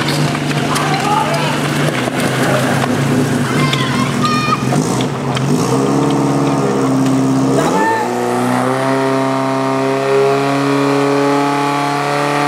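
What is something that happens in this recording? A fire engine's pump motor runs steadily, then revs up loudly.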